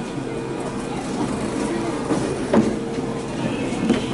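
A train door slides shut with a soft thud.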